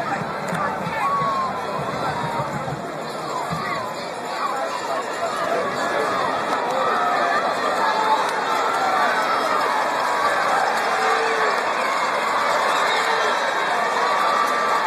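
A crowd of spectators cheers and chatters loudly outdoors.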